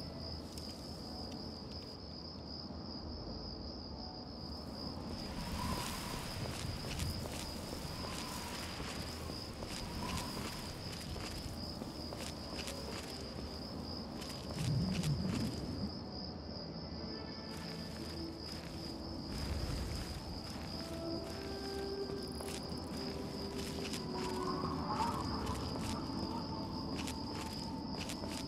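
Footsteps crunch on gravel at a steady walking pace.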